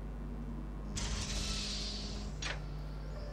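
A door slides open with a rushing whoosh.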